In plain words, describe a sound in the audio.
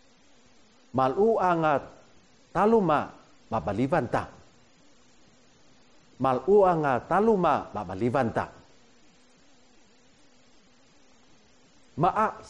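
A middle-aged man speaks slowly and clearly close to a microphone, pronouncing short phrases with pauses between them.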